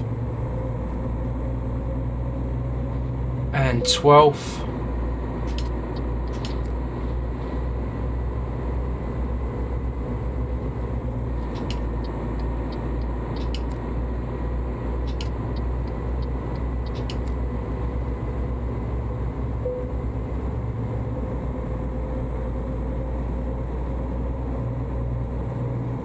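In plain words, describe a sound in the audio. A truck engine hums low and steady.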